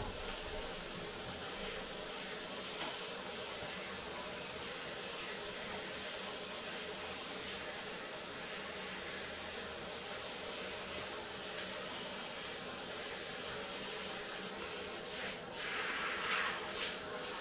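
Hands rub and squelch through a dog's wet, soapy fur.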